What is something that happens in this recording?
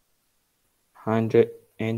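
A man speaks calmly through a microphone on an online call.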